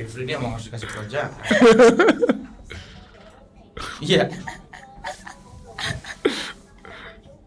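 A young man chuckles softly close to a microphone.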